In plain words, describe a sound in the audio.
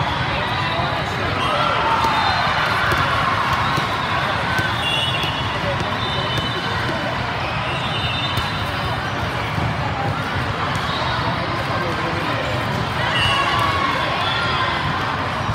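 Young women players shout to each other.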